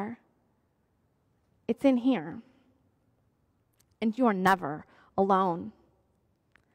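A woman speaks warmly and expressively into a close microphone, with pauses between phrases.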